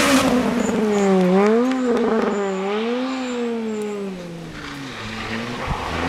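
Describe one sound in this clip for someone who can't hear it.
A rally car engine revs hard, rising and falling as it speeds away.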